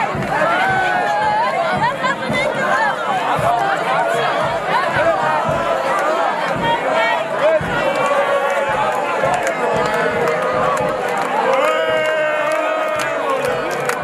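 A large outdoor crowd sings along loudly together.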